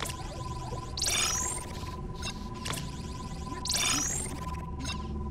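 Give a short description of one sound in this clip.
A bright electronic chime sparkles twice.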